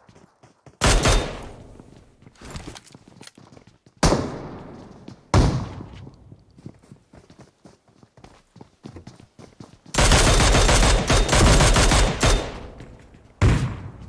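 Gunfire cracks loudly in sharp bursts, with a rapid volley.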